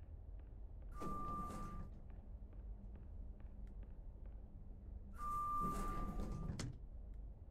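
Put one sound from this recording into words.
An elevator bell chimes.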